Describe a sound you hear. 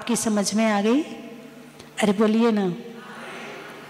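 An elderly woman chants in a drawn-out voice through a microphone.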